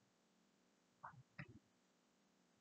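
Plastic cups knock and clatter briefly.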